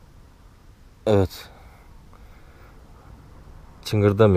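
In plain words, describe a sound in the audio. A man speaks close by in short, loud bursts.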